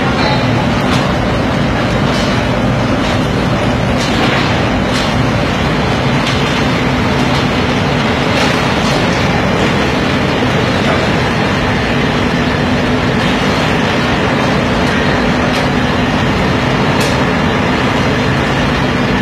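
Heavy rolling-mill machinery roars steadily in a large echoing hall.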